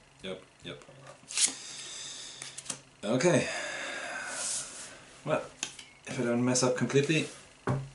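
Cards slide and rustle across a table.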